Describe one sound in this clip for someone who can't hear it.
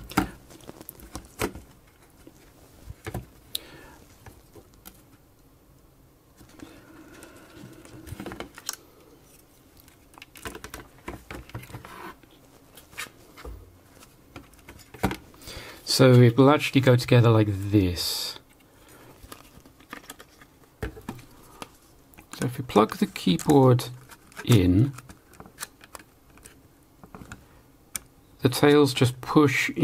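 Plastic casing parts click and knock as they are handled close by.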